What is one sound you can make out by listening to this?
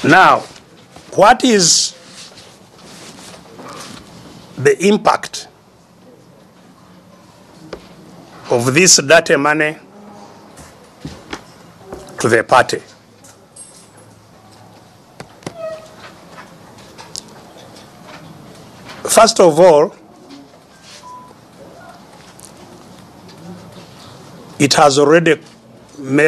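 An elderly man speaks slowly and emphatically into a microphone, with long pauses.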